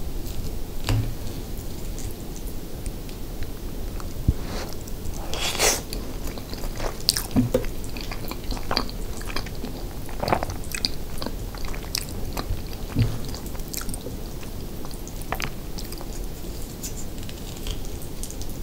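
A plastic spoon scrapes and taps against a metal pan.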